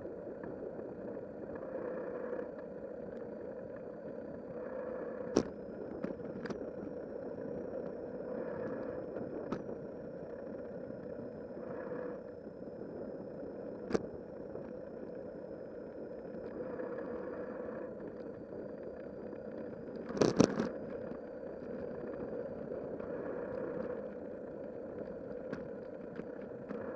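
Wind rushes steadily past outdoors.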